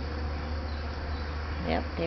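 A wasp buzzes close by.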